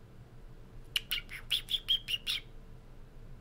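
A bright, quickly pulsing chime sounds from a card game.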